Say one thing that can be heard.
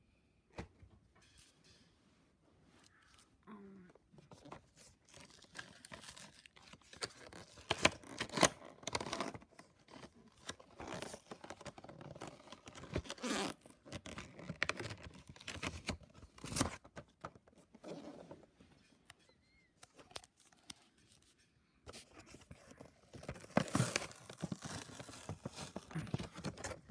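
Stiff plastic packaging crinkles and rustles as hands handle it up close.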